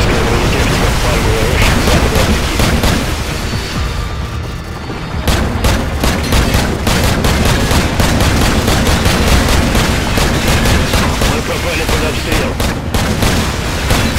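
Explosions boom one after another.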